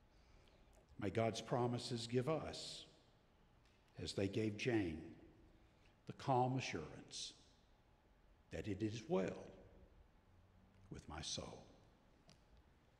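An elderly man speaks calmly into a microphone in short phrases, with pauses between them.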